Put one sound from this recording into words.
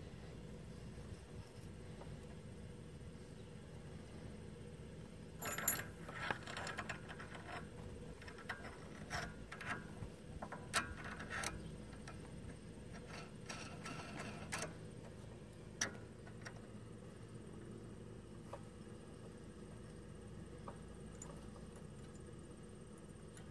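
Hands rub and tap against rubber hoses and metal fittings.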